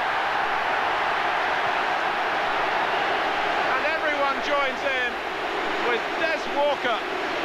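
A large crowd roars loudly and steadily in a stadium.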